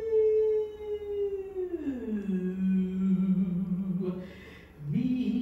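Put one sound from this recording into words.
A woman sings a long, sliding note, her voice dropping low and then rising again.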